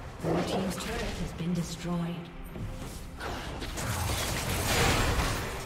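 Video game spell effects whoosh and crackle during a battle.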